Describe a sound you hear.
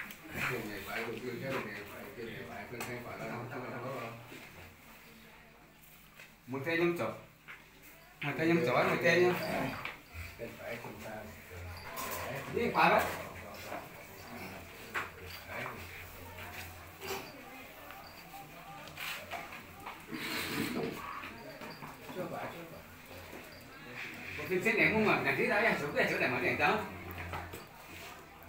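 People murmur and talk nearby.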